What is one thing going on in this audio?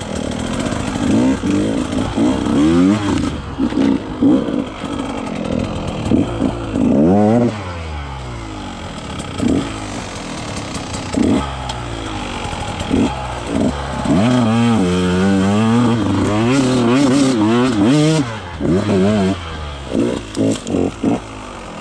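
A dirt bike engine revs up and down, close by.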